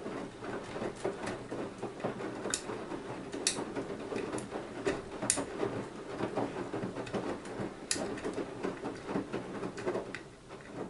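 Water sloshes and splashes inside a turning washing machine drum.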